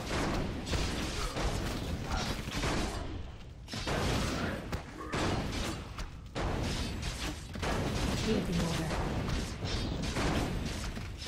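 Magic spells crackle and whoosh.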